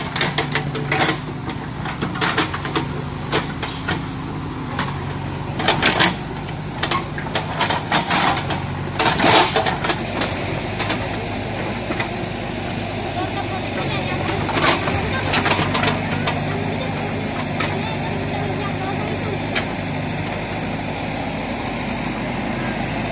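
A backhoe's diesel engine rumbles steadily nearby.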